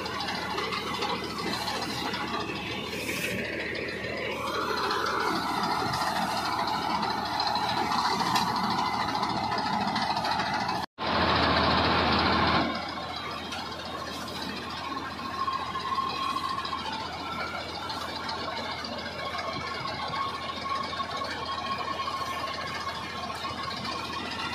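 A mower's blades clatter as they cut through dry wheat stalks.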